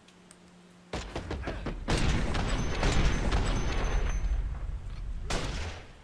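Fire roars after a blast.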